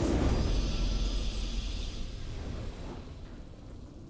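Triumphant fanfare music swells loudly, then fades away.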